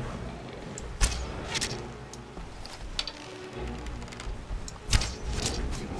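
A bowstring snaps sharply as an arrow is loosed.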